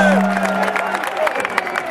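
A young man talks loudly nearby in a crowd.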